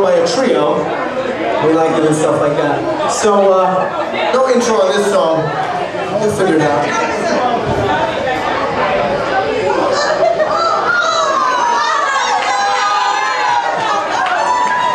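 A rock band plays loudly live in an echoing room.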